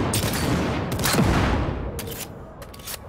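A car explodes with a loud boom.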